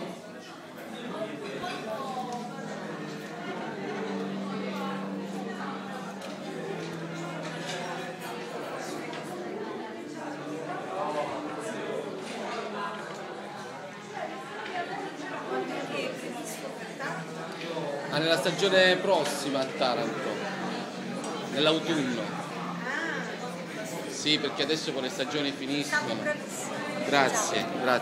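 A crowd of people chatter and talk over one another in a room with some echo.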